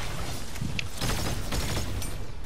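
A gun fires in rapid shots.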